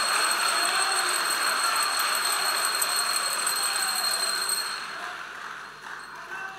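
A large crowd cheers and chatters in a big echoing hall.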